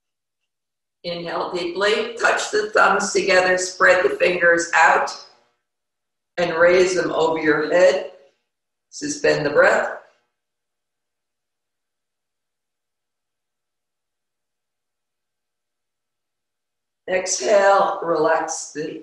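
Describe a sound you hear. A middle-aged woman speaks calmly and clearly into a close microphone.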